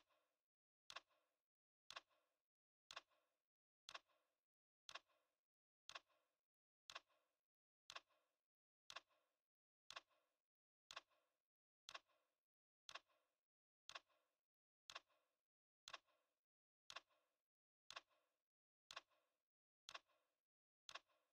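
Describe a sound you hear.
A countdown timer ticks sharply once every second.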